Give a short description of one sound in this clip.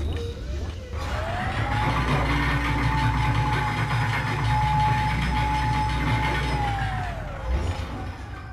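A heavy lift hums steadily as it runs, its whine rising and then falling away.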